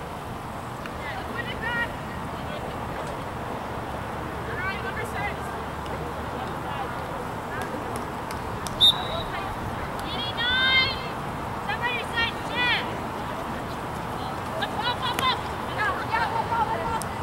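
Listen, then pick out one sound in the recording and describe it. Players shout to each other across an open field, heard from a distance.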